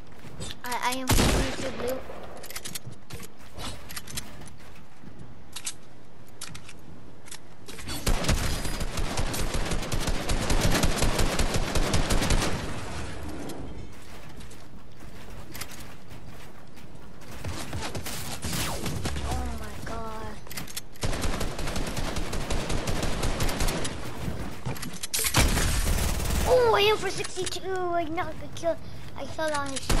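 A young boy talks with animation into a headset microphone.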